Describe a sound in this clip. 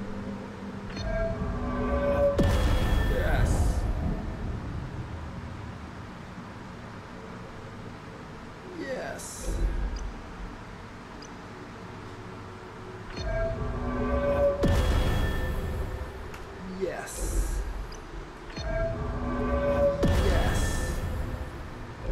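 Game menu chimes ring out.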